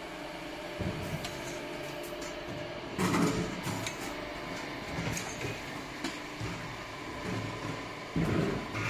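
A filling machine hums steadily.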